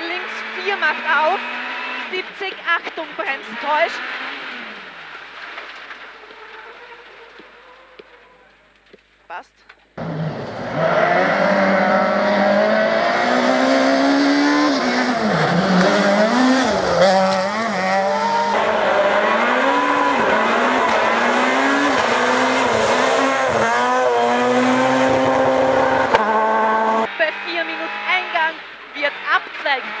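A rally car engine revs hard, rising and falling in pitch as it changes gear.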